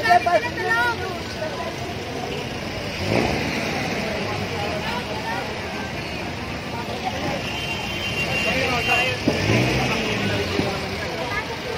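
Busy street traffic hums outdoors.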